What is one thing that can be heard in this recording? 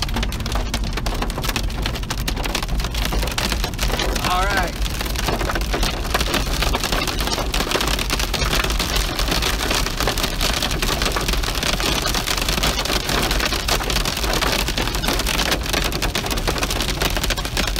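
Heavy rain drums on a car's windscreen.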